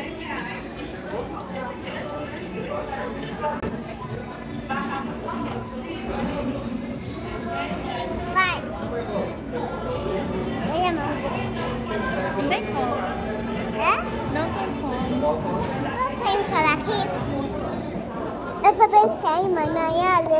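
People murmur in the background.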